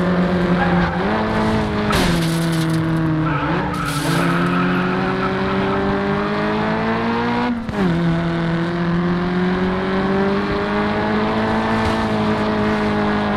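A racing car engine roars loudly, its pitch rising as it speeds up and dropping sharply at each gear change.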